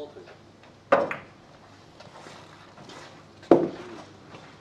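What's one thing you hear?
Billiard balls click sharply against each other in a quiet room.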